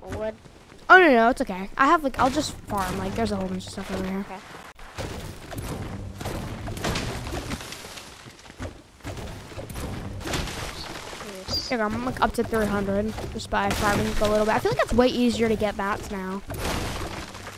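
A boy speaks excitedly into a close microphone.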